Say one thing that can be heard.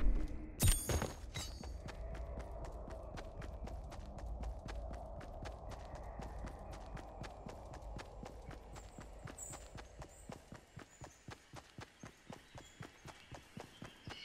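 Footsteps patter quickly and evenly as a game character runs.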